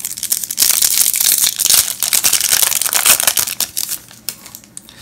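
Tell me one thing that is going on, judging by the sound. A foil wrapper crinkles and tears loudly close by.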